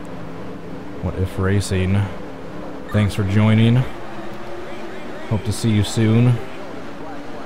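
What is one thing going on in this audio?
A race car engine revs sharply in three short bursts.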